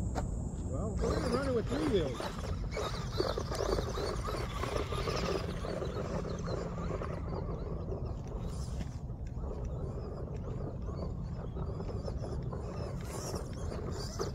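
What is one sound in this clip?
A small electric motor whines and revs as a toy car speeds off.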